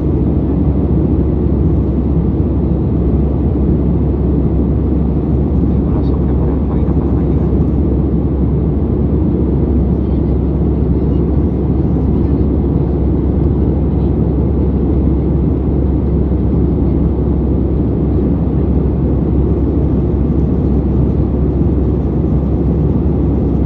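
Jet engines roar steadily, heard from inside an aircraft cabin.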